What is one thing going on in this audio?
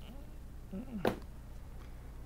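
A metal laptop casing clatters onto a work mat.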